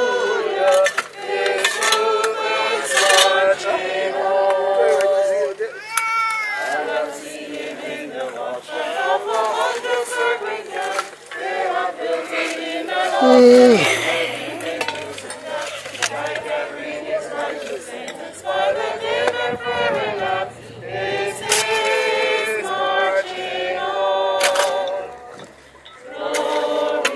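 A group of people sings together outdoors.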